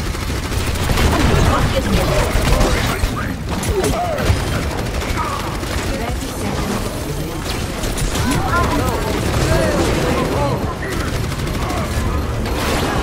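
Energy weapons fire in rapid bursts with buzzing zaps.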